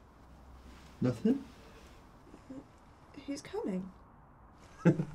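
A young woman speaks quietly and tensely close by.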